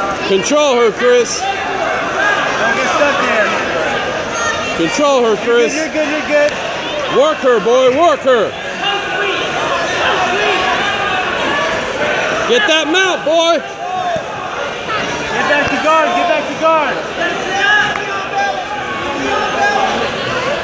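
A crowd of spectators chatters and shouts encouragement in an echoing hall.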